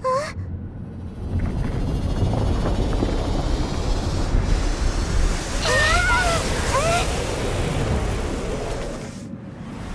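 A deep magical rumble swells and roars.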